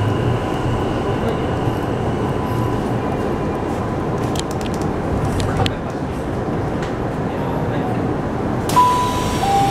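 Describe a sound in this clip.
A train rumbles steadily as it rolls along.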